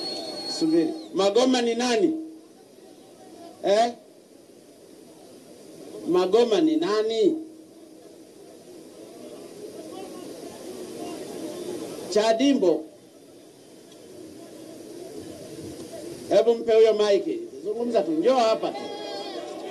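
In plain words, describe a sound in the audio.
A man speaks with animation through a microphone and loudspeakers, outdoors, in short bursts.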